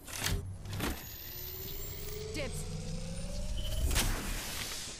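A device charges with a rising electronic hum.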